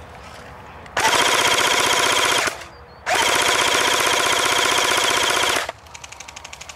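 An electric airsoft rifle fires two long rattling full-auto bursts.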